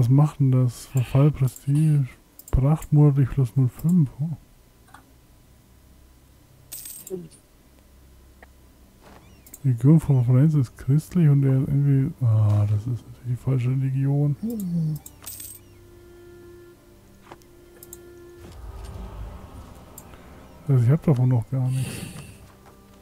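A man talks calmly and close into a microphone, pausing now and then.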